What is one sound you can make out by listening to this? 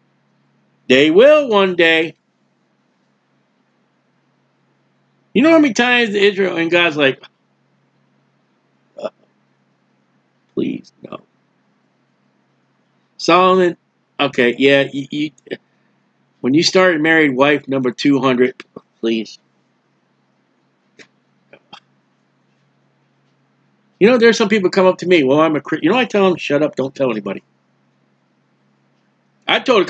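A middle-aged man speaks with animation into a nearby microphone, in bursts with pauses.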